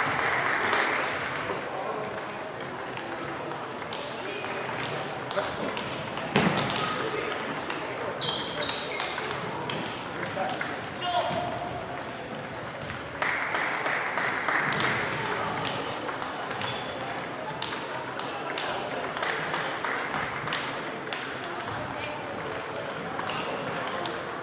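A crowd of players and onlookers murmurs in the background.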